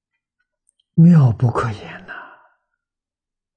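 An elderly man speaks warmly and with animation into a close microphone.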